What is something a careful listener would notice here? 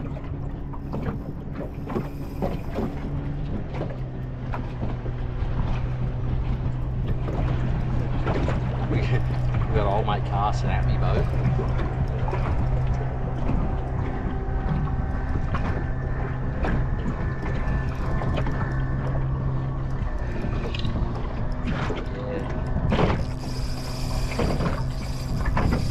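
Wind blows outdoors over open water.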